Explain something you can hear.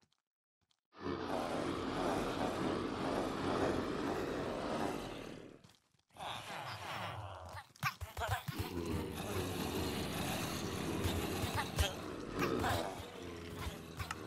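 A crowd of game zombies groans and moans loudly.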